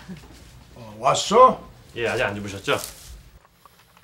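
A middle-aged man speaks with surprise nearby.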